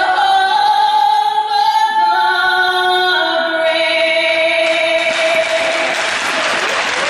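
An anthem plays over loudspeakers in a large echoing rink.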